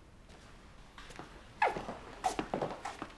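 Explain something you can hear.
Footsteps and high heels click across a hard floor.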